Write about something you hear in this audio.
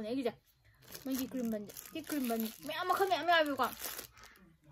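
A plastic bag crinkles as it is opened.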